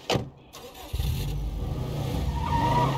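A car engine starts and runs with a low rumble.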